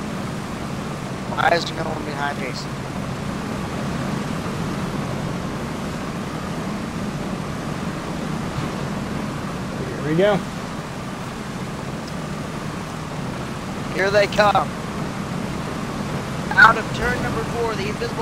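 Race car engines roar steadily.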